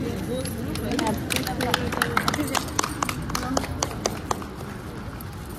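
People clap their hands in quick bursts.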